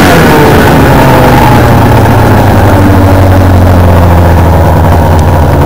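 A snowmobile engine settles into a steady drone while riding.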